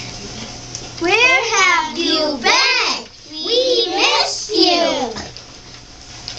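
A young girl sings into a microphone, close and clear.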